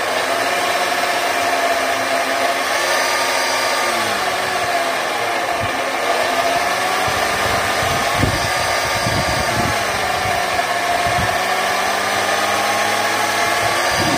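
A steel blade grinds harshly against a spinning wheel.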